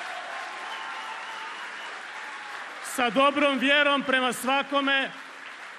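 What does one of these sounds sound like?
A large crowd cheers and applauds in a big echoing hall.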